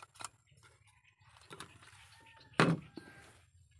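A metal stove clatters down onto a metal surface.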